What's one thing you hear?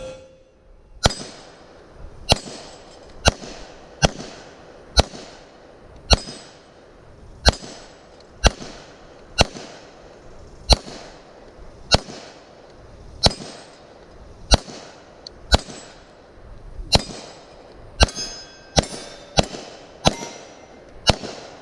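A pistol fires shot after shot outdoors, each shot echoing off trees.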